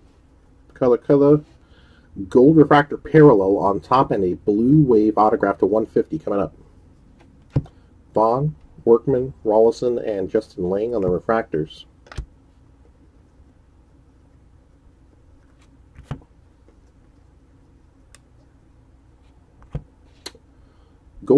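Trading cards rustle and click as hands flip through them.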